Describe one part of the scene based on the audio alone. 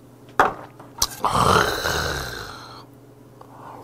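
A man exhales loudly after a drink.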